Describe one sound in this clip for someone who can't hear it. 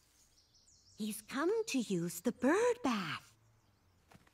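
An elderly woman speaks with animation, close by.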